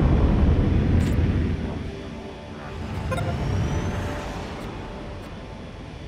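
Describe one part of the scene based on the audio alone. A soft interface click sounds.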